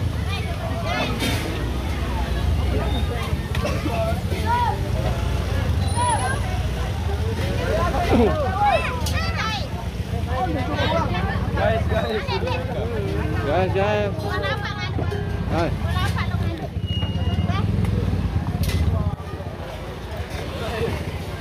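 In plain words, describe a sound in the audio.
Several people talk at once close by, outdoors in a crowd.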